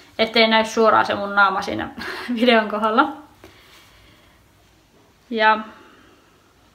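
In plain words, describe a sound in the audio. A young woman speaks calmly and close to the microphone.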